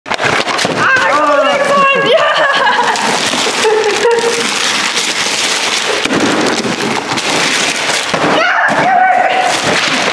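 Wrapping paper crinkles and tears loudly.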